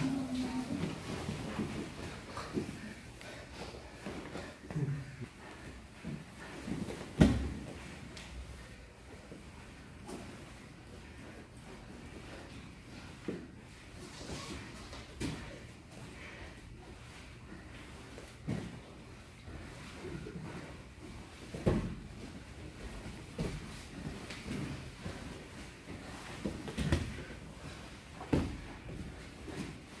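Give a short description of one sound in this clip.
Fabric rustles and scuffs as two men grapple.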